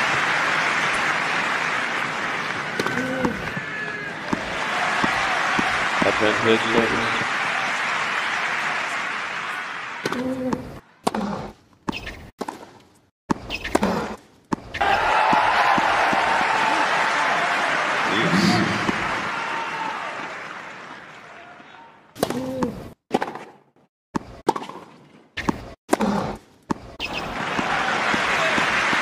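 A crowd cheers and applauds in a large arena.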